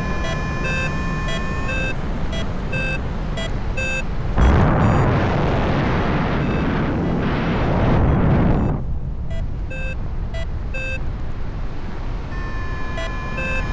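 Wind rushes steadily past outdoors in flight, growing louder for a few seconds.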